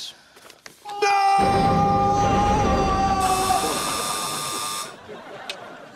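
A young man screams loudly and at length.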